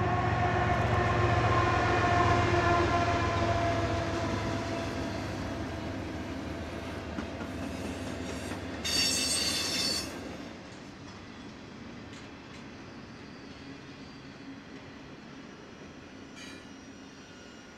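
Freight cars rattle and clatter steadily along the rails.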